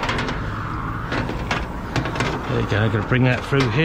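Metal couplings knock and click against each other.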